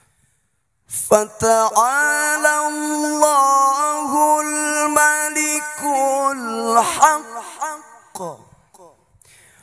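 A man sings loudly with long held notes through a microphone.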